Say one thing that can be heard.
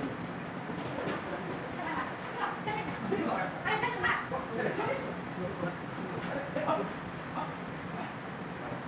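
Men talk to each other in a large echoing hall.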